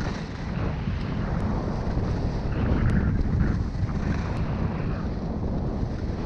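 Wind rushes loudly past, close and buffeting.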